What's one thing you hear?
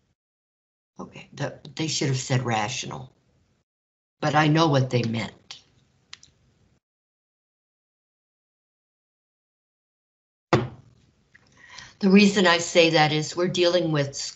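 An elderly woman speaks calmly into a microphone, explaining in pauses.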